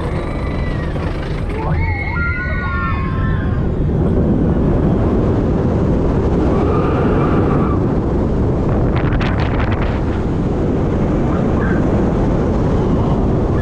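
Wind roars loudly past a fast-moving roller coaster.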